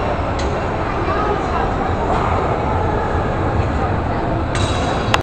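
A carousel turns with a steady low rumble.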